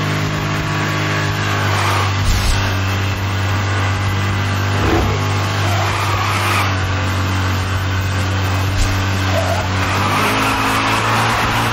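A powerful car engine roars steadily at high speed.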